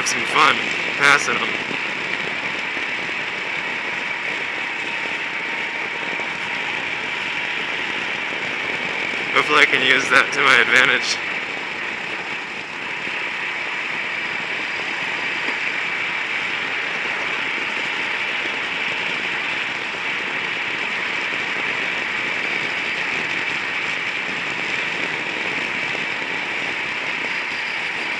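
A small kart engine buzzes steadily at high revs, close by.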